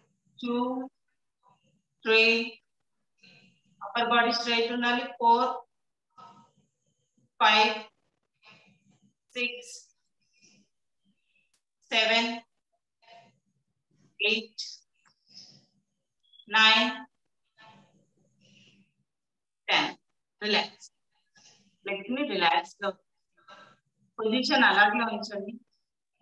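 A woman speaks calmly and clearly, close to a microphone, with short pauses.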